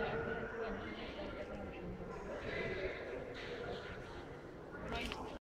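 Men talk nearby amid a busy murmur of voices.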